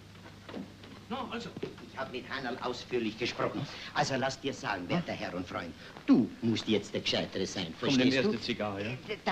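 Two elderly men talk with animation, close by.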